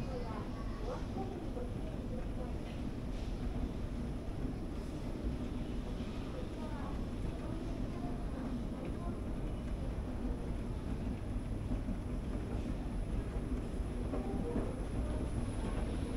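An escalator hums and rumbles steadily.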